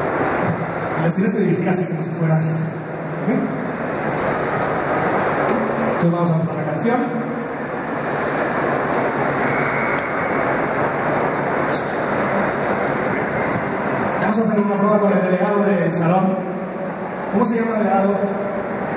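A man sings into a microphone, heard loudly through loudspeakers.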